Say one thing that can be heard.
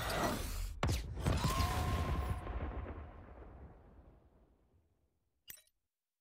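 A magical menu sound effect swells and slowly fades away.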